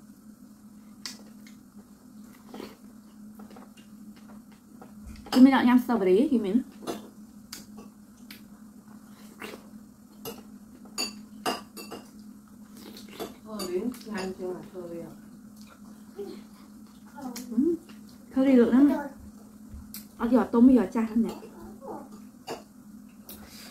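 Crisp fruit crunches as a young woman bites and chews.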